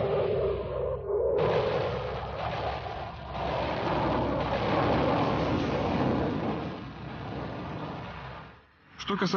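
A jet engine roars steadily overhead.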